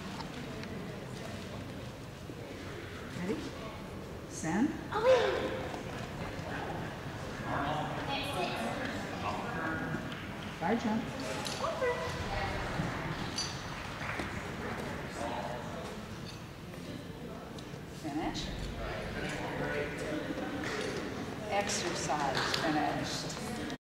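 Several people chat in the distance in a large echoing hall.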